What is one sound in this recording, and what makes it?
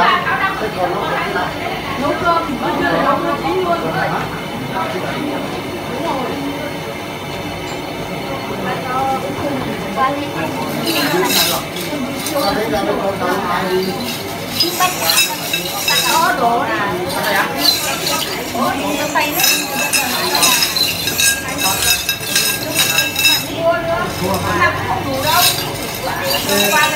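Elderly women talk with each other nearby.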